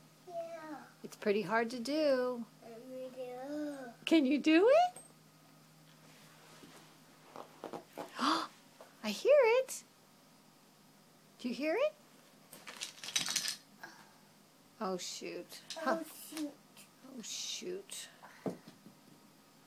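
A toddler girl babbles and talks in a high voice close by.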